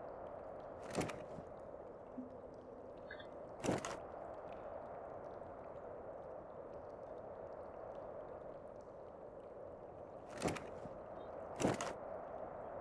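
Short interface clicks sound as a menu opens and closes.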